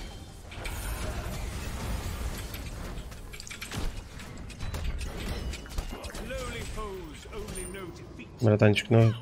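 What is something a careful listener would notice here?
Game spells crackle and blast in quick bursts.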